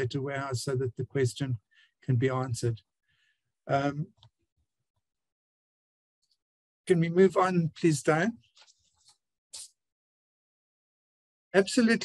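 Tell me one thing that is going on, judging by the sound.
An older man speaks calmly through a microphone in an online call, with pauses.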